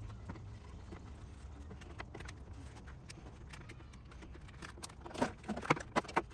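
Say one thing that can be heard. Hands knock and rattle the plastic trim of a truck's front end.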